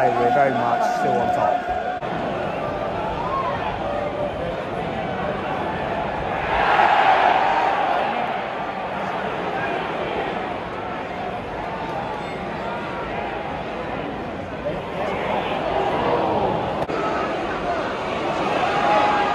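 A large stadium crowd chants and roars outdoors.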